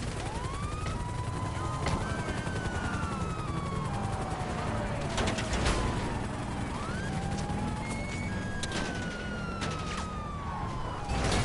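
A police siren wails, rising and slowly falling.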